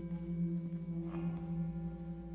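A mallet strikes a singing bowl with a soft, ringing stroke.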